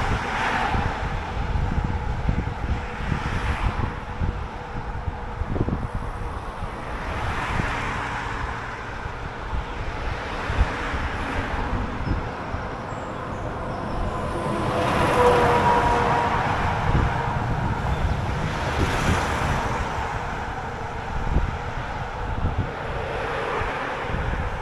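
Cars whoosh past one after another.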